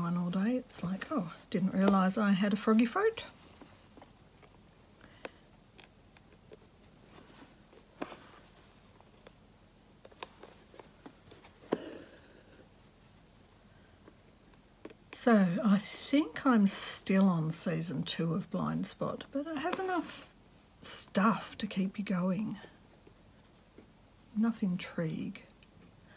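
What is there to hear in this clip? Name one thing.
Fabric rustles softly as it is handled.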